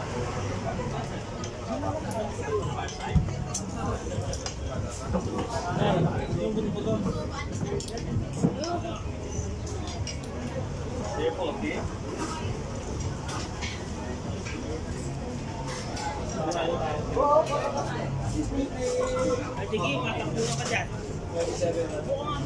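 A crowd of diners chatters all around outdoors.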